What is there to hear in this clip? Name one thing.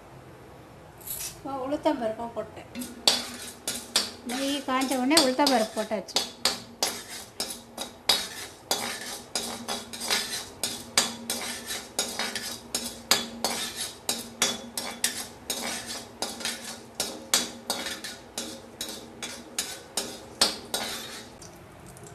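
Seeds crackle and pop in hot ghee in a wok.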